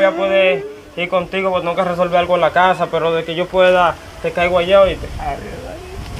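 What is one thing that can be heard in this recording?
A young man sobs and wails loudly close by.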